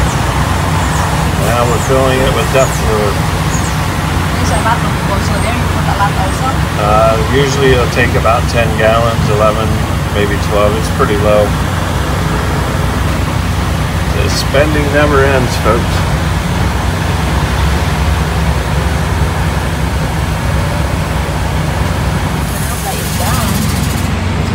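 A fuel pump hums steadily as fuel flows.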